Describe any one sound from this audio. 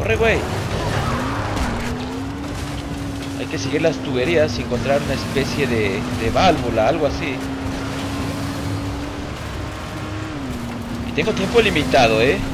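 A buggy engine hums steadily, rising in pitch as it speeds up.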